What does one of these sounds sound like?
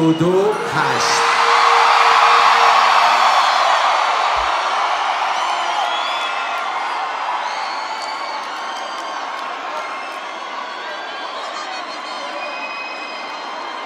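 A large crowd cheers and whistles loudly in a huge open arena.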